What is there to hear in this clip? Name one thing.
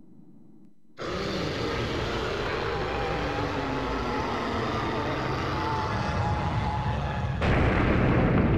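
A huge beast lets out a deep, rumbling roar.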